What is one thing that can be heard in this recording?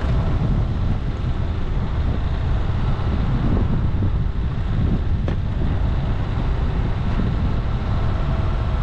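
A vehicle engine rumbles steadily nearby.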